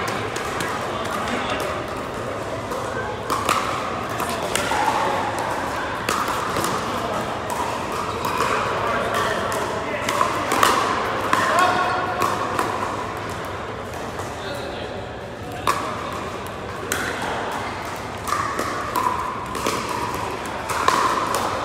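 Paddles strike a plastic ball with sharp pops, echoing in a large hall.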